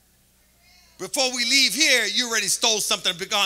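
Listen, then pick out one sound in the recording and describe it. A man speaks animatedly into a microphone in a large hall.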